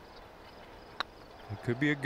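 A putter taps a golf ball.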